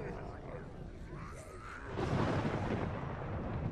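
A fire roars and crackles nearby.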